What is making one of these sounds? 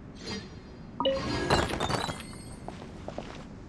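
A sparkling chime rings out.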